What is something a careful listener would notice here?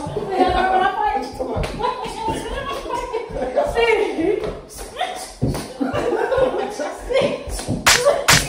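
A young woman shouts with excitement nearby.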